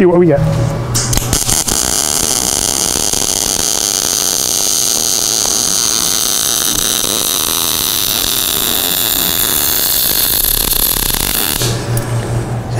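A welding arc hisses and crackles steadily.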